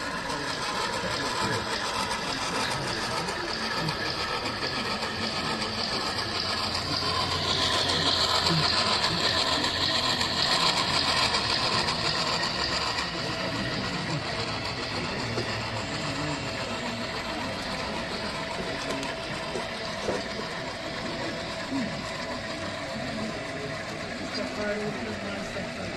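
A model steam locomotive rolls along metal rails, its wheels clicking and whirring.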